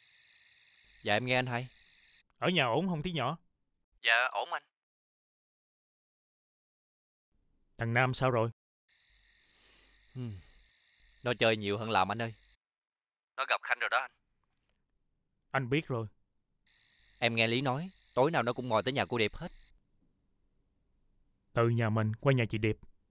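A man speaks tensely on a phone, close by.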